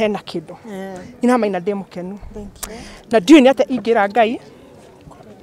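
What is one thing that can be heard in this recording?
A woman speaks with emotion close to microphones.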